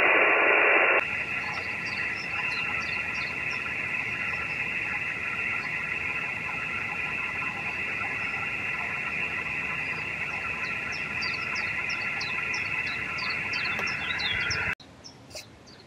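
A small electronic box hums with a quieter hiss.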